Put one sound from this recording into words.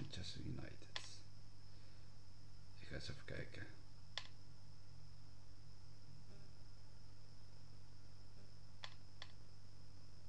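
Short electronic menu clicks tick now and then.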